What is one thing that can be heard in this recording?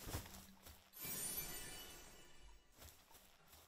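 A bright chime sparkles as an item is picked up.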